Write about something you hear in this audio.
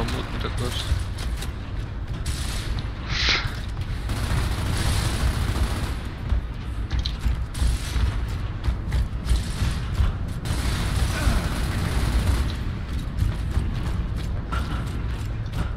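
Heavy boots thud on a hard floor with armour clanking.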